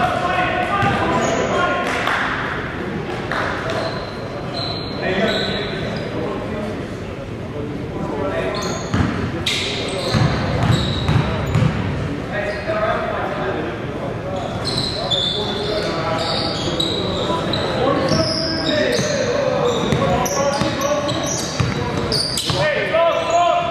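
Several men call out to each other in a large echoing gym.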